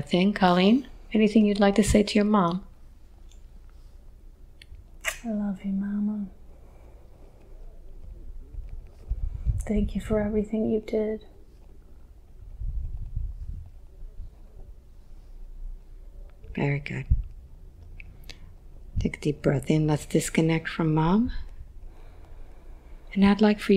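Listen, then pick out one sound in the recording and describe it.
A woman speaks slowly and calmly into a close microphone, with long pauses.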